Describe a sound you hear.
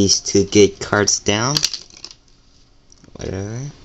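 Playing cards slap down onto a table.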